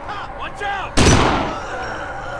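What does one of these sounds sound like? A gunshot bangs loudly and rings out.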